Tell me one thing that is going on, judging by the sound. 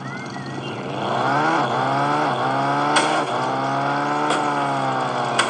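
A car engine revs and hums as it drives along.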